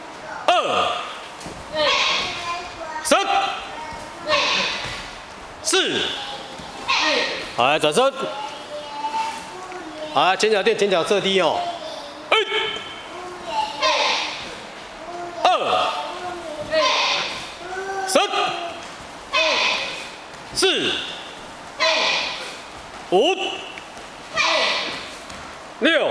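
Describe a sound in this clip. A group of teenage boys and girls shout together in sharp bursts, echoing in a large hall.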